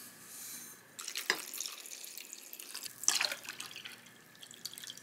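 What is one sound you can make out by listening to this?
Water pours and splashes into a bowl.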